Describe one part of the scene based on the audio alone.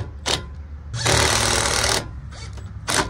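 A cordless drill whirs briefly.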